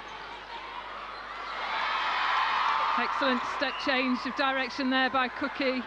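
A large crowd cheers loudly in a big echoing hall, swelling in volume.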